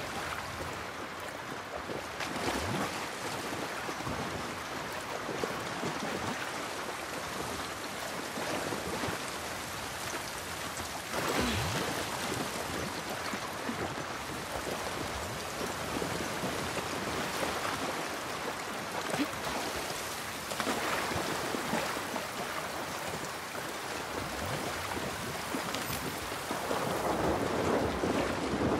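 Footsteps splash and slosh through shallow water.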